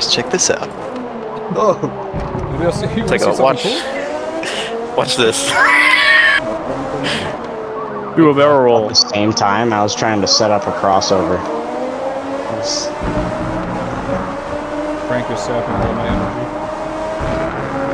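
A racing car engine whines steadily, rising and falling in pitch as the car speeds up and slows for corners.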